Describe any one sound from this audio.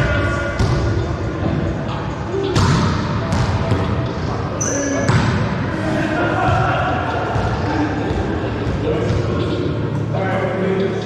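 A volleyball thumps off players' hands and forearms in a small echoing room.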